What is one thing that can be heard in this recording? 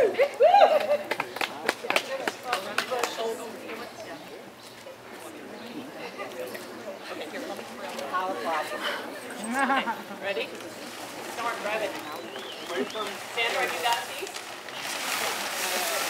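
A crowd of young women chatters and murmurs.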